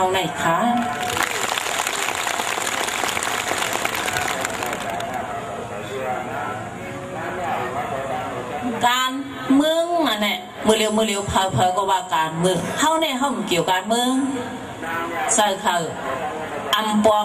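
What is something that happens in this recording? A middle-aged woman speaks steadily through a microphone and loudspeakers outdoors.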